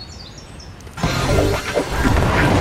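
A loud burst of magical whooshing and sparkling plays.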